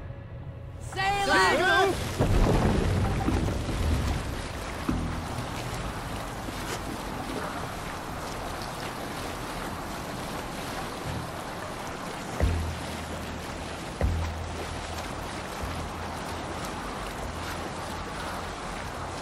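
Water rushes and splashes against a wooden boat's hull.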